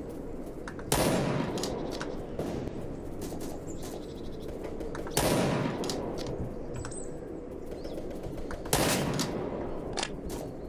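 Gunshots crack in loud bursts.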